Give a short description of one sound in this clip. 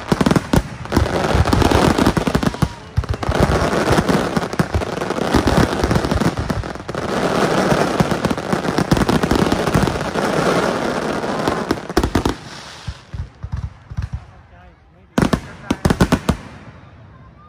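Fireworks boom with deep bangs.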